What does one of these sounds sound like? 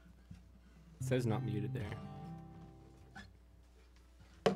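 An acoustic guitar chord is strummed and rings out.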